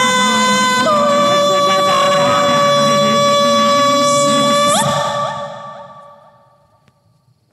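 A woman sings a long, high held note that breaks off and fades away.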